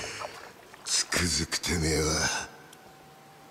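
A man speaks in a low, rough voice, heard close by.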